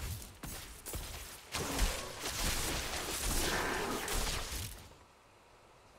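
Game combat sounds clash and crackle loudly.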